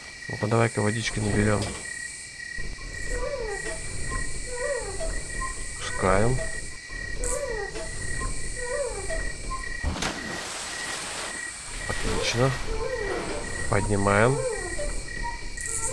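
A wooden winch creaks and squeals as a crank turns it.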